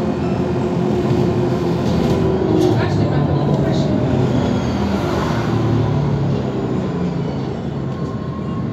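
A vehicle's engine rumbles steadily, heard from inside as it drives along a street.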